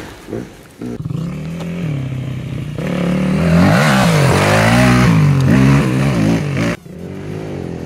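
A small dirt bike engine hums steadily as it rides closer.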